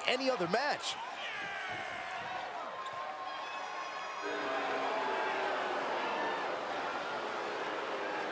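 A large crowd cheers and roars in an arena.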